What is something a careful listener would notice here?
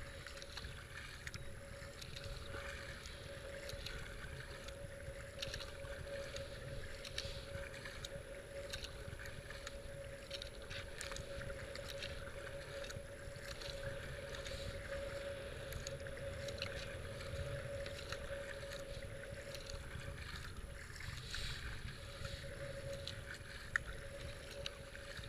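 A paddle splashes rhythmically into water.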